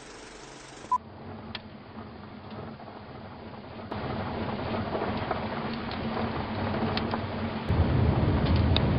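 Tyres rumble on a gravel road.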